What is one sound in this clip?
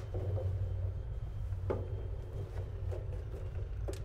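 Cloth rustles as laundry is pulled from a washing machine drum.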